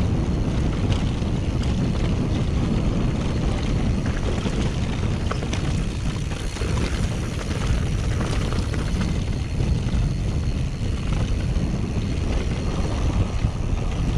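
Loose stones click and rattle under bicycle tyres.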